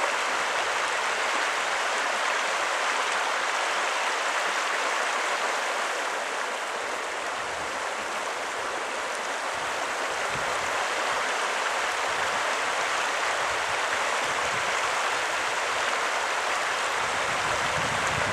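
A large animal splashes through shallow water.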